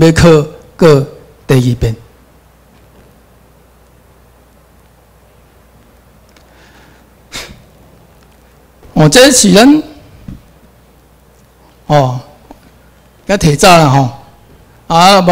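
A man speaks through a microphone in short bursts with long pauses.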